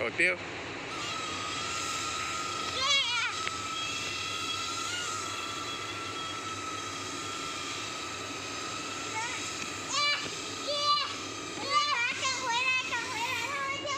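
A small propeller toy flying saucer whirs overhead.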